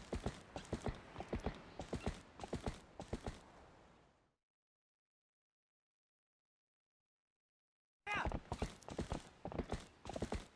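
Horse hooves gallop steadily on a dirt path.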